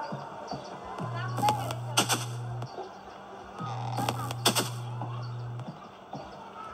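A game's spray can sound buzzes in two short bursts from a tablet speaker.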